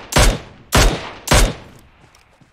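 A rifle in a video game fires single shots.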